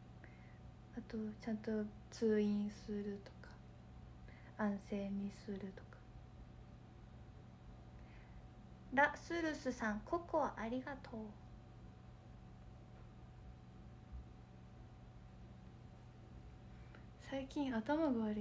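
A young woman talks with animation close to a microphone, pausing between phrases.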